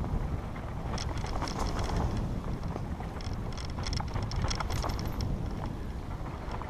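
A bicycle rattles and bumps over a rough dirt trail.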